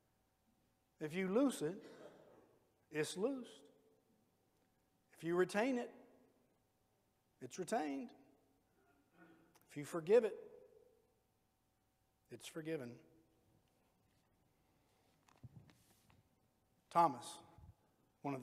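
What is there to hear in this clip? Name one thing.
A middle-aged man speaks slowly and calmly through a microphone in an echoing hall, with long pauses.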